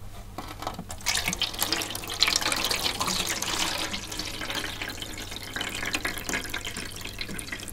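Water pours and splashes from a metal tray.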